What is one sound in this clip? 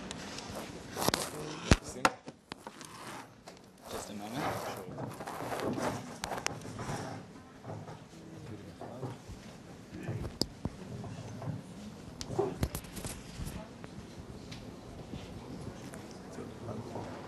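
A man talks quietly with another man, heard through a room microphone.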